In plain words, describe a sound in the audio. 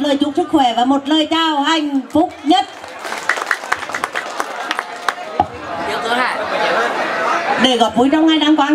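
A young woman sings through a microphone and loudspeakers.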